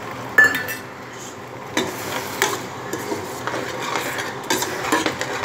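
A pan of liquid simmers and sizzles with crackling pops.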